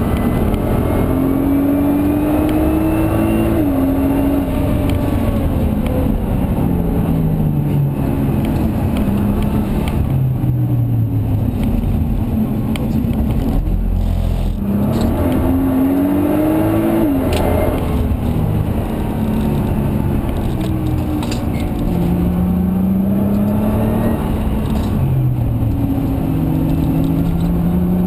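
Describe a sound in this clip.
A car engine roars loudly from inside the cabin, revving up and down through the gears.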